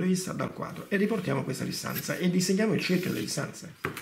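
A pencil scratches across paper along a ruler.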